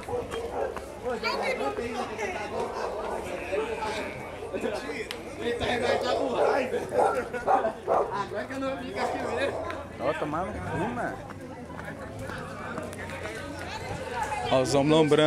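A young man talks loudly and animatedly close by.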